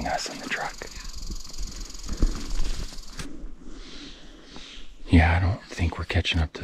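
A young woman speaks calmly close by, outdoors.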